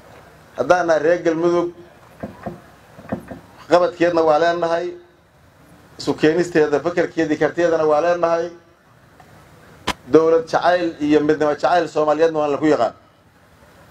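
A middle-aged man gives a speech through a microphone and loudspeakers, speaking with emphasis in pauses.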